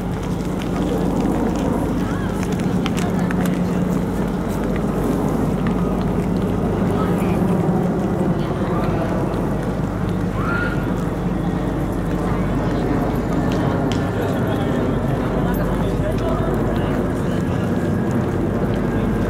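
Footsteps shuffle on wet pavement.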